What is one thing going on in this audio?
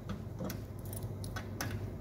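Keys jingle in a hand.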